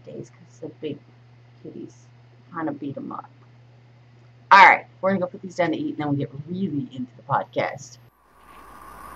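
A woman talks cheerfully close to a microphone.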